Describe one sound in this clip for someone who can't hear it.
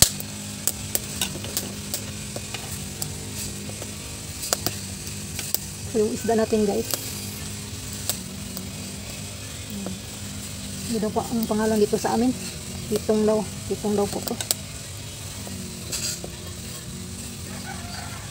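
A metal ladle clinks against a cooking pot.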